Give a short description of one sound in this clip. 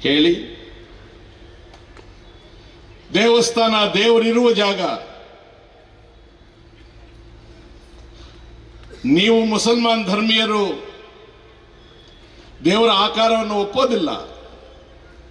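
An older man shouts a speech forcefully through a loudspeaker, in short bursts with pauses.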